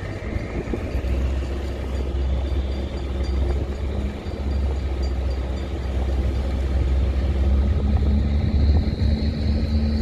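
A small motorboat engine hums as the boat approaches across the water.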